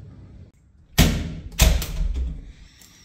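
A door clicks open with a thud.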